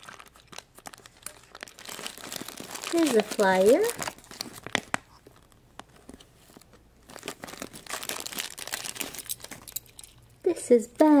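A plastic wrapper crinkles as it is torn open and handled.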